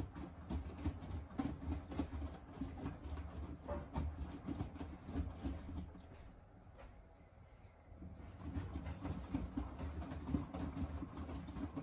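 Wet laundry thumps and sloshes inside a washing machine drum.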